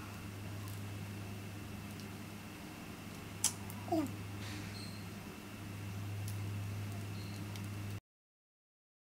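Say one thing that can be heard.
Earrings click faintly as a young woman fastens them.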